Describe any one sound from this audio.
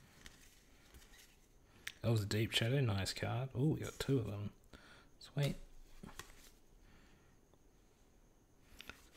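Playing cards slide and flick as they are flipped one by one.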